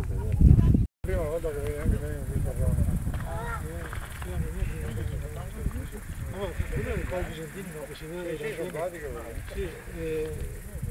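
Several people talk at a distance outdoors.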